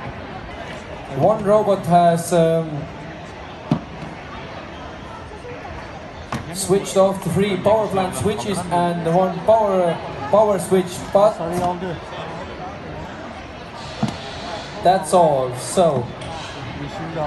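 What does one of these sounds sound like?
A man speaks with animation over a loudspeaker.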